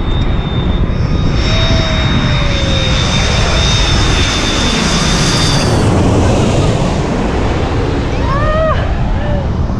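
A jet airliner roars loudly overhead and fades.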